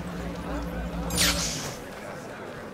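A whoosh sweeps by sharply.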